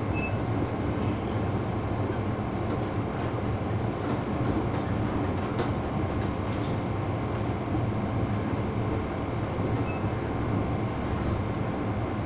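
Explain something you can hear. A train rumbles steadily along its track, heard from inside the carriage.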